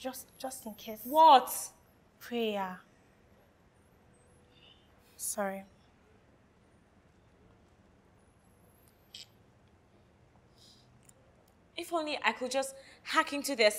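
A young woman speaks in a questioning tone close by.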